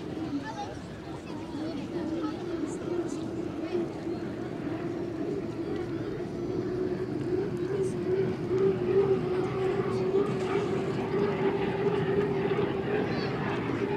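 A racing boat's engine roars steadily at high speed.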